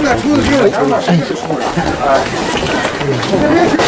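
Footsteps shuffle on wooden boards.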